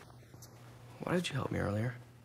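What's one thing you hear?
A young man speaks quietly nearby.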